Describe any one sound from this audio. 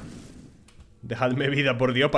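A man speaks close to a microphone, with animation.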